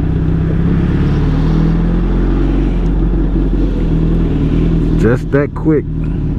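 An inline-four sport bike engine hums as the motorcycle cruises along a road.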